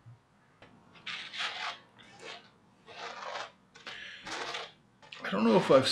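Sandpaper scrapes in short strokes across a board.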